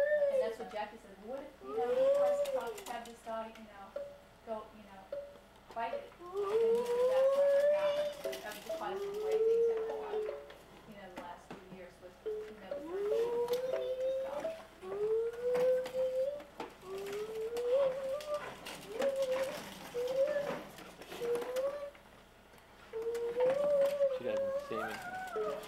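Plastic toys clatter softly.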